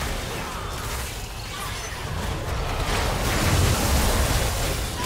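Magic blasts and impacts crackle and boom in a fast game battle.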